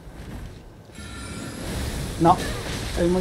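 Magic spells crackle and hum.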